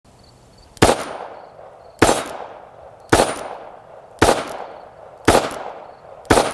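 A revolver fires sharp, loud shots at a steady pace outdoors, each ringing out briefly.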